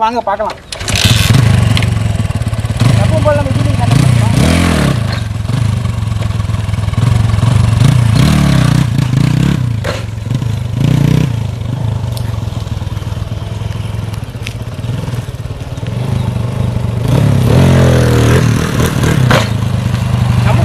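A motorcycle engine revs and roars in bursts.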